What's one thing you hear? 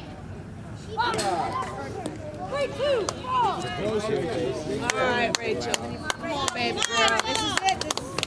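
A crowd of spectators cheers and shouts nearby outdoors.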